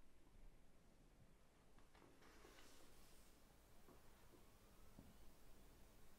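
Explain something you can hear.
Paper rustles softly in someone's hands.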